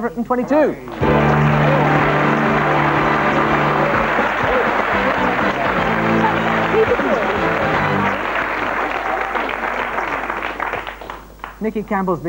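A studio audience applauds and cheers.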